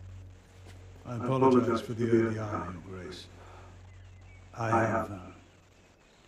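A young man speaks calmly into a nearby microphone.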